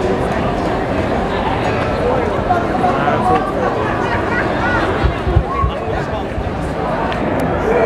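An acoustic guitar is strummed loudly through loudspeakers outdoors.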